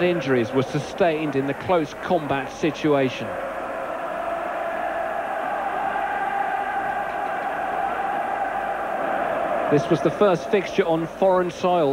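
A large crowd roars in the distance.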